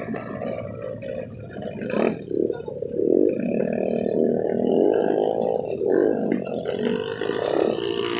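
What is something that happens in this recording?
Motorcycle engines idle and rev nearby, outdoors.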